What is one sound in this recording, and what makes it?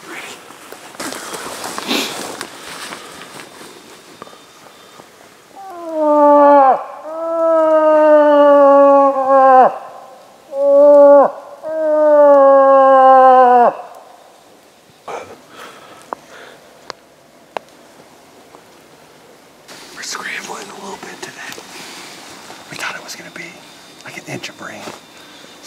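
A man talks calmly close by outdoors.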